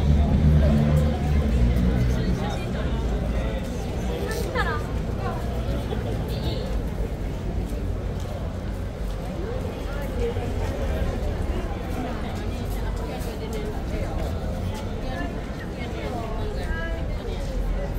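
A crowd of adults talks nearby outdoors.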